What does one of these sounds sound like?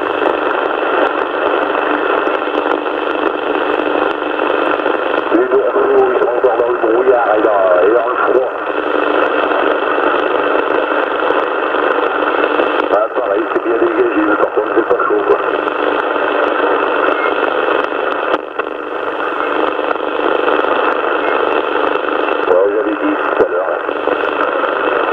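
A CB radio hisses with steady static.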